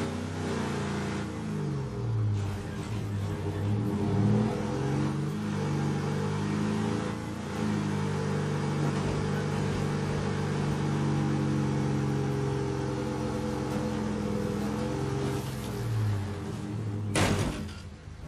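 A van engine drones and revs up and down as it drives along.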